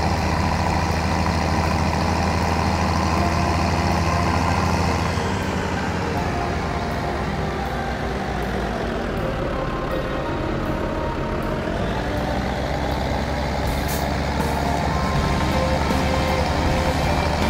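A tractor engine drones steadily, easing off and then picking up again.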